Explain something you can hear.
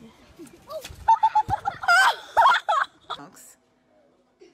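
A young girl cries out with effort.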